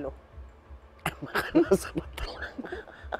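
A woman laughs close to a microphone.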